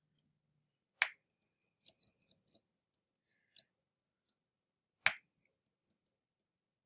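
Short video game sound effects chirp and pop.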